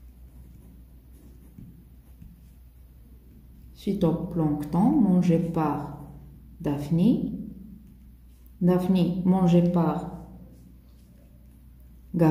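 A pen scratches on paper while writing.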